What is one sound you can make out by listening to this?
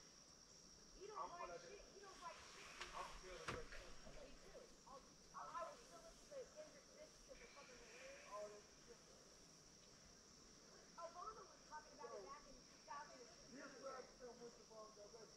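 A young man talks quietly nearby.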